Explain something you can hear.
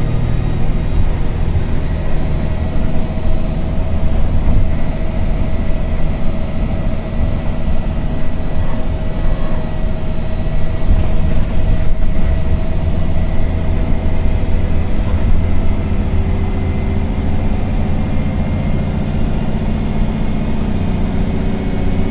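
A bus rattles and vibrates over the road.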